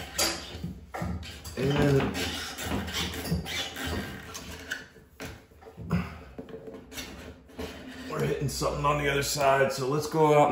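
Metal parts scrape and knock inside a ceiling opening.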